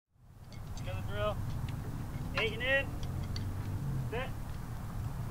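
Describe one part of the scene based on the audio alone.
A man calls out loudly outdoors.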